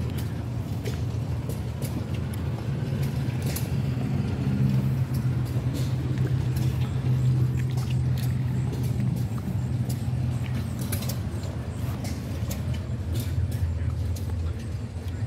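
An old tractor engine idles nearby with a low, steady chugging rumble.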